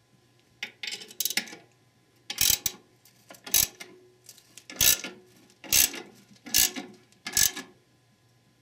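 A ratchet wrench clicks in short bursts against metal.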